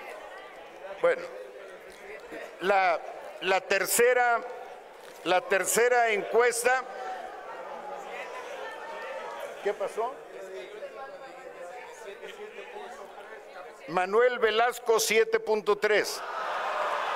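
A man speaks into a microphone over loudspeakers in a large echoing hall, announcing with animation.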